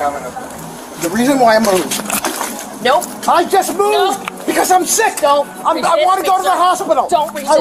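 A woman speaks close by, upset and pleading.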